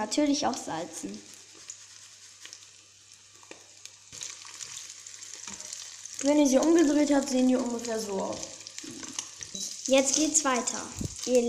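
Eggs sizzle softly in a frying pan.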